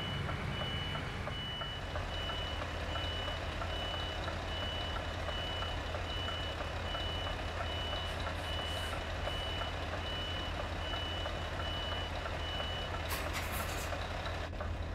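A diesel truck engine rumbles low as the truck reverses.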